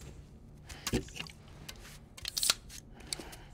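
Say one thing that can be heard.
A can's tab snaps open with a hiss.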